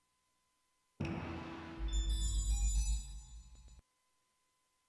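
A bright musical jingle plays with a deep booming swell, then stops.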